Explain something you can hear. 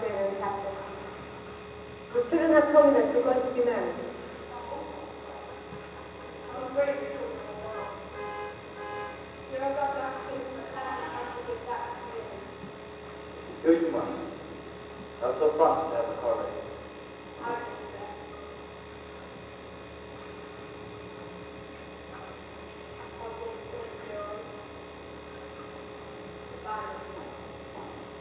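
A woman speaks loudly on a stage, echoing in a large hall.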